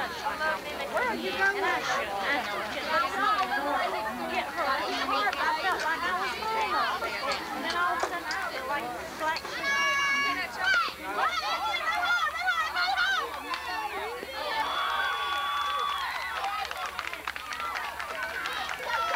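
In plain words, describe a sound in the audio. Many voices of girls and women chatter and call out close by, outdoors.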